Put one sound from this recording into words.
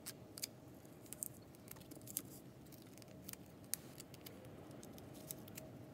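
Scissors snip through cardboard in short, quiet cuts.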